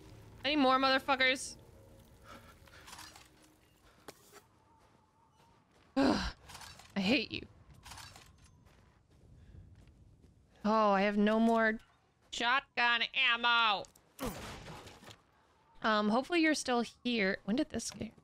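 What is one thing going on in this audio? A young woman talks animatedly into a close microphone, sometimes in a sing-song voice.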